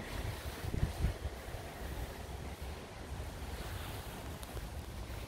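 Wind rustles leafy branches outdoors.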